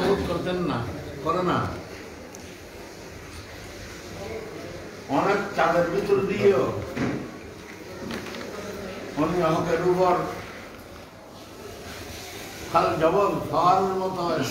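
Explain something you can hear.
An elderly man speaks slowly and calmly, close by, in bursts with pauses.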